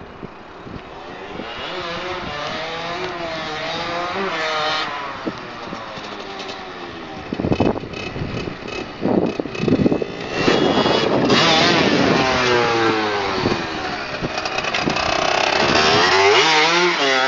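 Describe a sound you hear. A small motorbike engine buzzes and revs, growing louder as it approaches.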